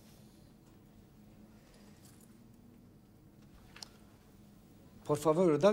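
Paper rustles softly.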